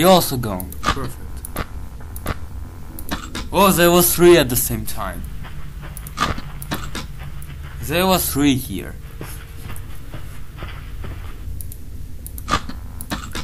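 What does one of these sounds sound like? Harsh electronic static crackles and hisses.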